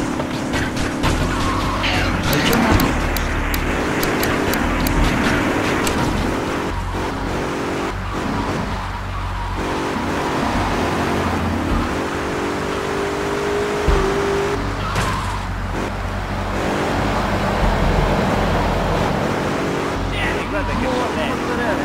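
A car engine hums and revs steadily as the car drives along.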